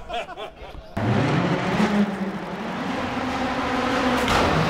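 A car engine drones and rises in pitch, echoing in a tunnel.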